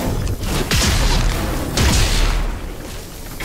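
Electric energy crackles and whooshes in bursts.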